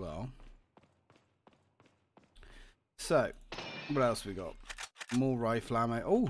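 Footsteps tread on a hard stone floor.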